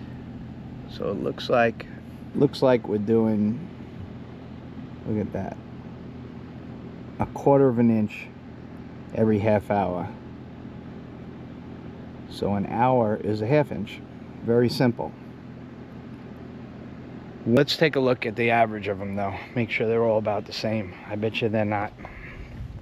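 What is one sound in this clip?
A middle-aged man talks calmly, close by.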